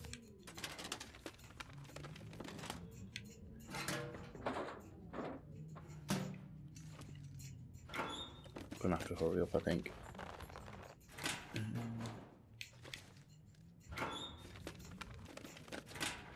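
Metal cabinet doors and drawers rattle as they are searched.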